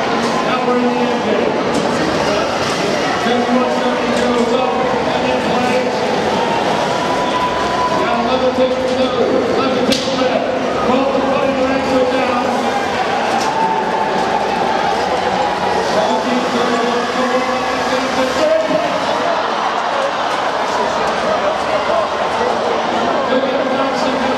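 A large crowd cheers and chatters in an echoing hall.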